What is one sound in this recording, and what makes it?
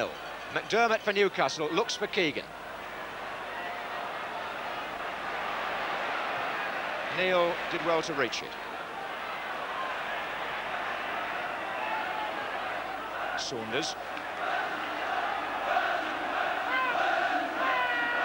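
A large stadium crowd murmurs and cheers steadily outdoors.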